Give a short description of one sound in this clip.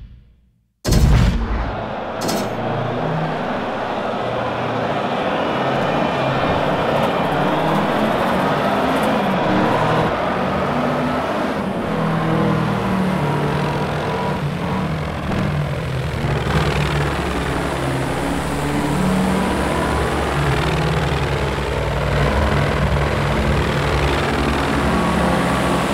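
A racing car engine roars and revs up and down as the car speeds along.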